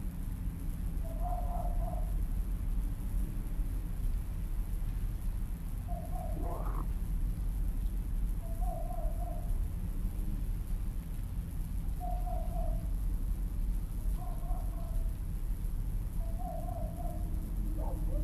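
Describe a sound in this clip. Crows caw now and then in the distance.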